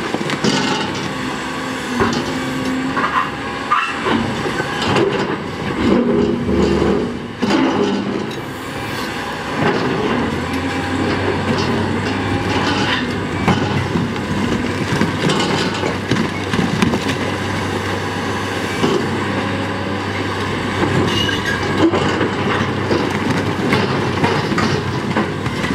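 An excavator bucket scrapes and knocks against rock.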